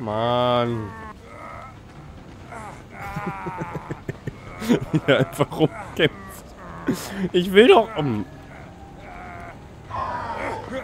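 A young man talks and laughs with animation into a microphone, close by.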